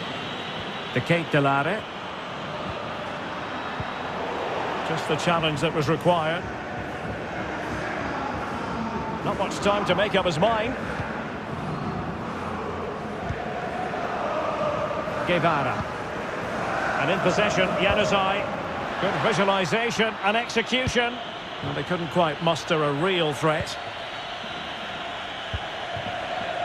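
A stadium crowd murmurs and cheers steadily in the background.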